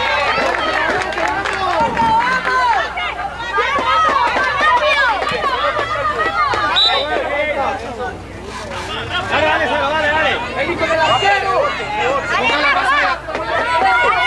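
A ball is kicked on a pitch.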